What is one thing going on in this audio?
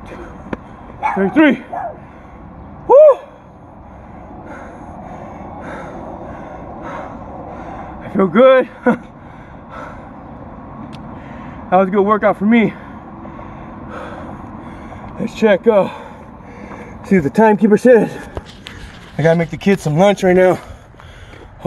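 A man speaks loudly in short bursts close by, outdoors.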